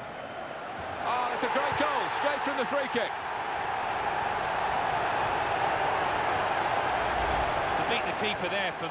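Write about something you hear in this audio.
A large stadium crowd roars and cheers.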